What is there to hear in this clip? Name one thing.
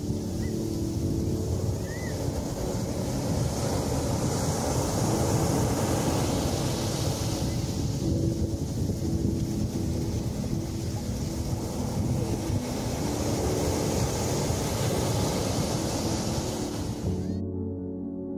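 Small waves break and wash onto a sandy shore.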